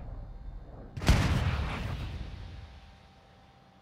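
A rifle shot booms and echoes away.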